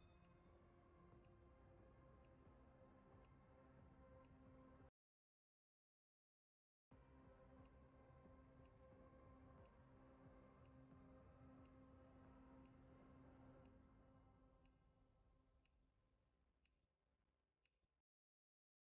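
A countdown timer ticks once every second.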